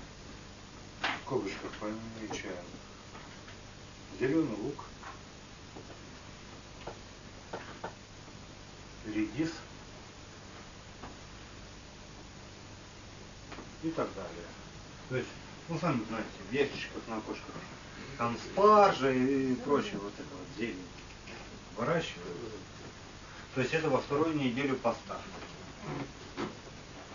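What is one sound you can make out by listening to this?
A man speaks slowly with pauses, close by in a room.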